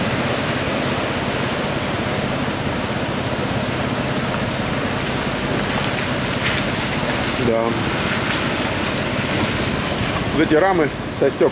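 Waves crash and roll onto a rocky shore.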